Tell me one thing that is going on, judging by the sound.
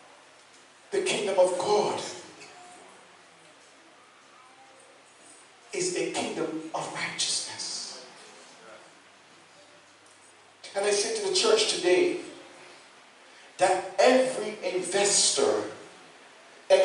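A man speaks into a microphone in short bursts, heard through loudspeakers in an echoing hall.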